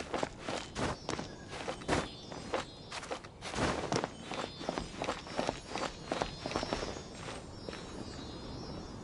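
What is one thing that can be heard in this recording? Hands and feet scrape and tap against stone while climbing.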